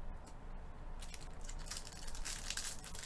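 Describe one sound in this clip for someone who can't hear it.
Foil wrappers crinkle and tear as packs are opened.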